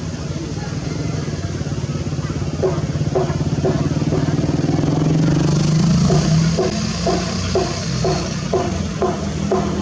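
Water churns and splashes around the moving machine.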